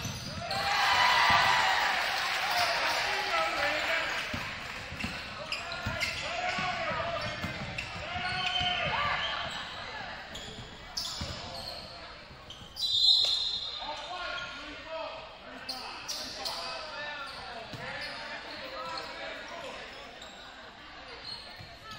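A crowd cheers loudly in a large echoing gym.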